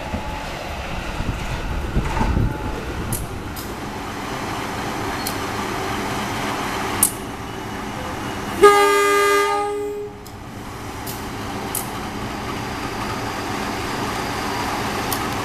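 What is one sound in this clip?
A train rumbles along the tracks.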